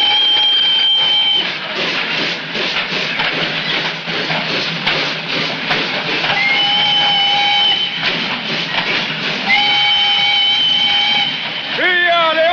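A steam locomotive whistle blows in long, steady blasts.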